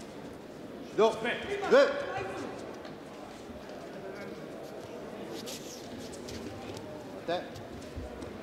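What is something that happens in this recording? A man shouts short commands loudly in a large echoing hall.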